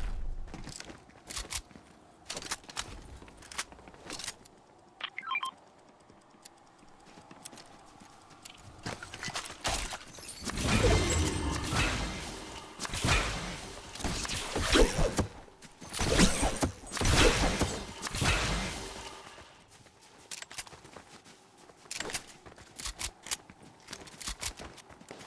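Footsteps patter quickly.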